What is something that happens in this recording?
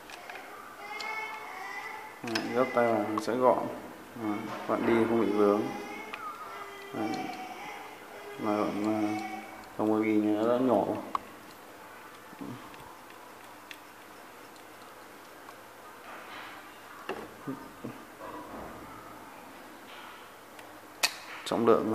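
A small plastic and metal reel clicks and rattles as it is handled.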